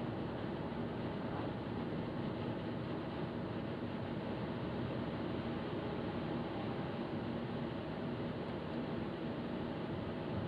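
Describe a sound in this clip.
A car's engine hums and its tyres roar steadily on the road from inside the car.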